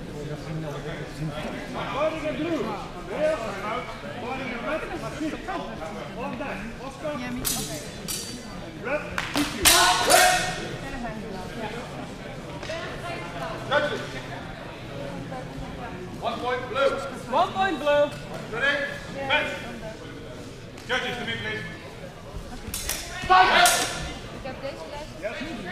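Many people talk at once in a large, echoing hall.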